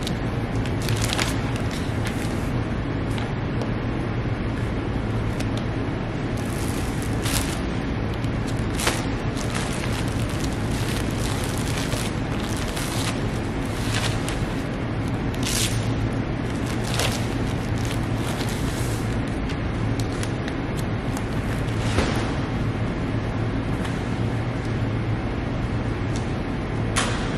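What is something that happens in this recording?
Plastic sheets and bags rustle and crinkle as they are handled.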